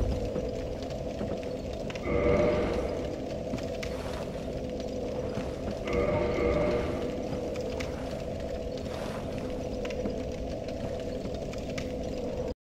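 A fire crackles steadily.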